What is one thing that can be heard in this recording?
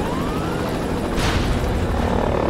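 An explosion booms nearby.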